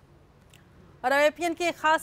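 A woman reads out the news clearly into a microphone.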